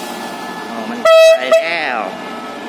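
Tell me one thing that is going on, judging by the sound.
A train horn blasts briefly.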